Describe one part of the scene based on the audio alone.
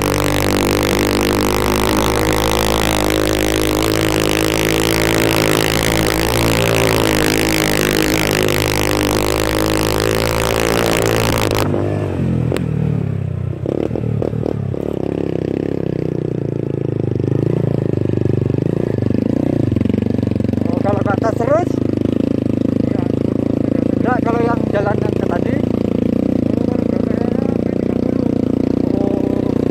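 A small motorcycle engine labours while climbing a hill.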